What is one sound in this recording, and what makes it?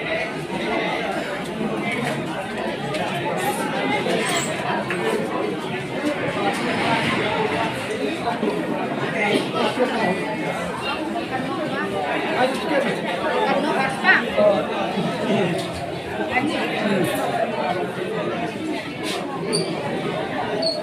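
A large crowd of young men chatters and shouts loudly all around, echoing in a hall.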